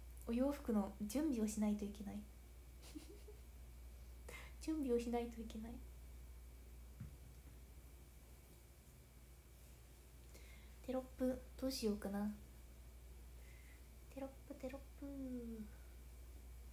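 A young woman talks casually and close to a microphone, in short bursts with pauses.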